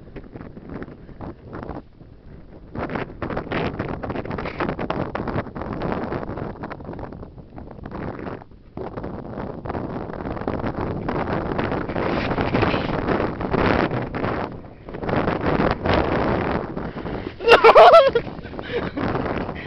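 Wind blows hard and gusts across an open outdoor space.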